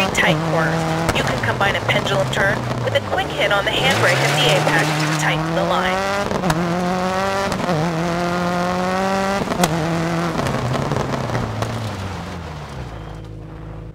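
A rally car engine revs hard and shifts through gears.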